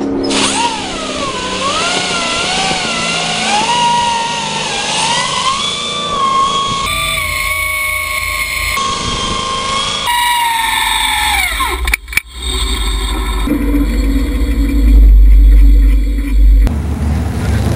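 A small engine revs hard and screams at a high, wavering pitch.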